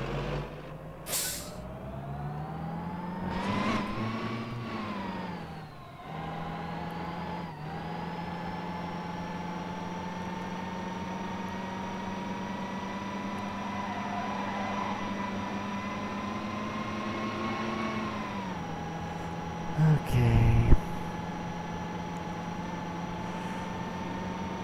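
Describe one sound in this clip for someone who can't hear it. A truck engine hums and revs up and down as it drives.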